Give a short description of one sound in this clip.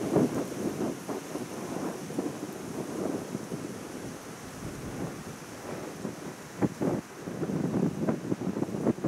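Wind gusts and rustles through the trees outdoors.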